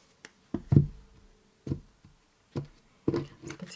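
Playing cards are laid down on a soft cloth with light taps.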